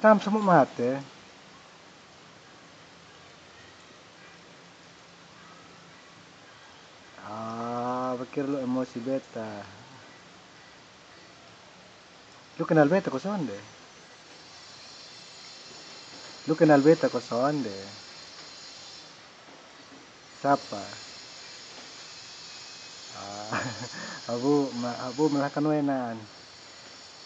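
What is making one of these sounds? A man speaks on a phone close by, in short bursts with pauses.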